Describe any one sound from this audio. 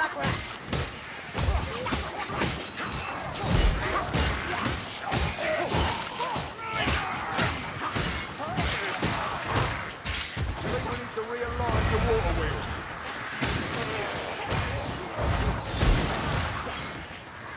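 Weapons slash and thud into creatures again and again.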